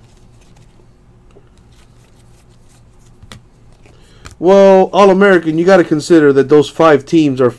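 Trading cards are shuffled and flicked by hand, with soft papery clicks.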